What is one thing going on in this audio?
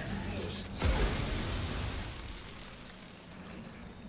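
Dust and rock come crashing down with a loud rumble.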